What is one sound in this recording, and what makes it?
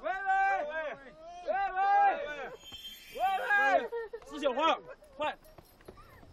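A man shouts urgently outdoors.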